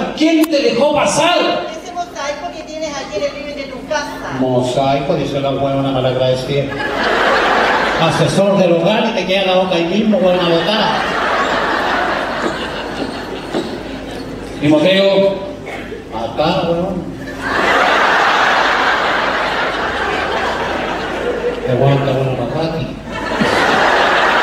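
A man speaks with animation into a microphone over loudspeakers.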